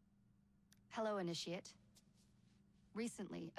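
A young woman speaks calmly and closely, as if through a microphone.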